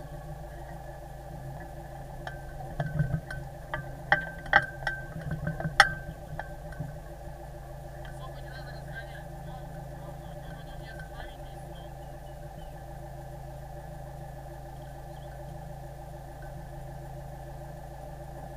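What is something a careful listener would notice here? A boat engine idles with a steady low hum.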